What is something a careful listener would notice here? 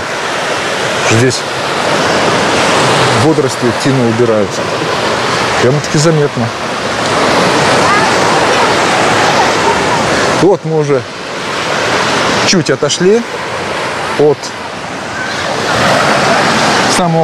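Small waves wash steadily onto the shore.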